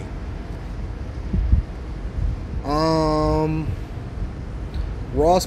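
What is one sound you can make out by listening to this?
A man speaks casually, close to a microphone.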